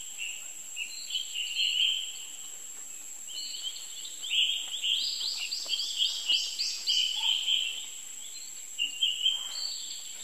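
A baby monkey squeals and screams in high, shrill cries.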